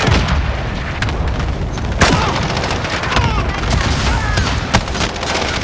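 Gunshots bang sharply several times.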